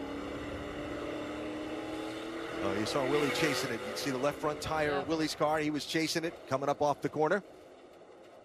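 A race car engine roars up close, revving up and down as gears shift.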